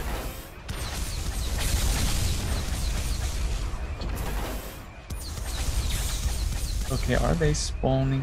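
A video game energy weapon hums and crackles as it fires.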